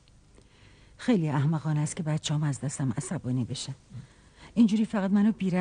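An elderly woman speaks.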